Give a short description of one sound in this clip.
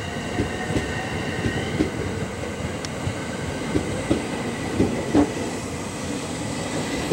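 A train pulls out slowly, its wheels clicking and thumping over the rail joints.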